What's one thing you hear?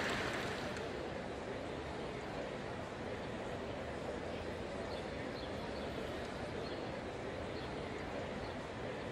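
A crowd murmurs softly.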